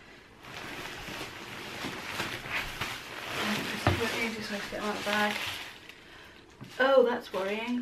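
A plastic bag crinkles loudly.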